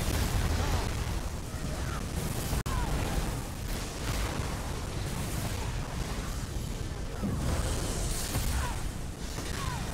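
Magic spells whoosh and crackle in a fierce battle.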